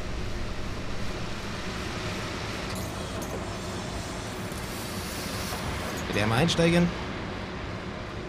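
Rain patters on a windscreen.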